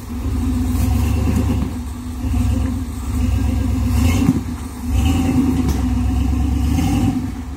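Tyres grind and scrape against rock.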